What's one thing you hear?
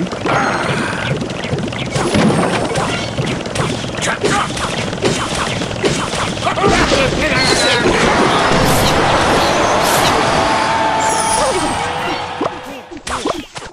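Electronic battle sound effects clash and burst.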